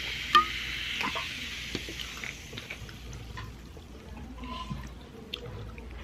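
A plastic bottle crinkles and taps as it is handled.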